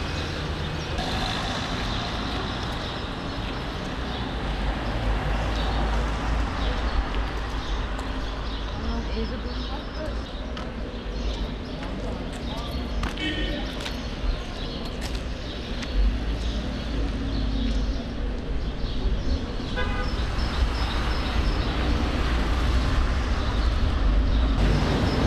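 City traffic hums steadily outdoors nearby.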